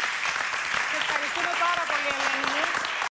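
A woman cheers loudly.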